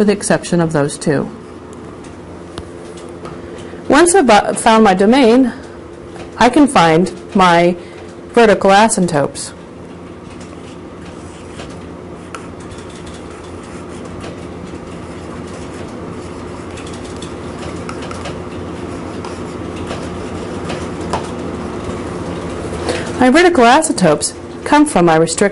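A woman speaks calmly, explaining, close by.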